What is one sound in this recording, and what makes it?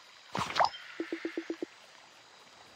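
Short soft game blips tick rapidly in a quick run.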